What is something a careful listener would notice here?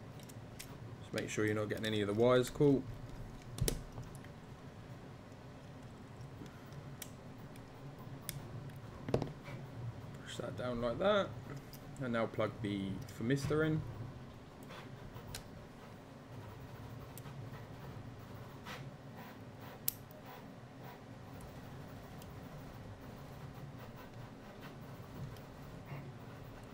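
Small plastic parts click and tap as hands handle them.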